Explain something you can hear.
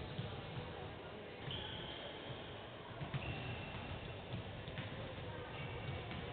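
A basketball bounces with dull thumps on the court.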